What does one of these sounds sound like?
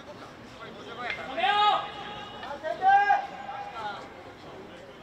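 Young men shout loudly in the open air.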